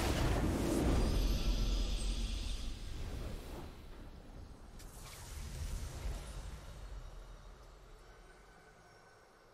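A triumphant game fanfare swells and then slowly fades away.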